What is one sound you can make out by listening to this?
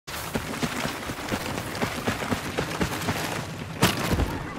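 Footsteps crunch quickly over dirt and gravel.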